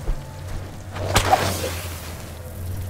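A sling whirls and flings a stone.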